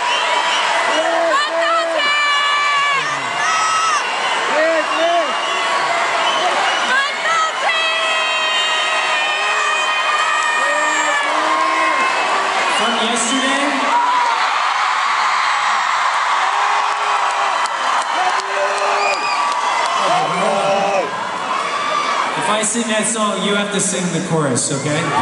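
A large crowd sings along loudly.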